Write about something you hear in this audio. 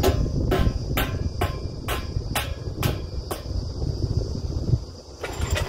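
A drilling rig engine rumbles steadily outdoors.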